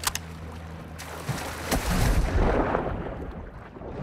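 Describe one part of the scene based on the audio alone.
A body plunges into water with a splash.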